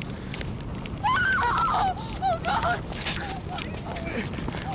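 A woman screams in panic.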